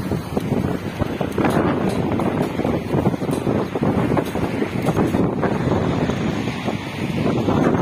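Cloth flags flap and snap in the wind.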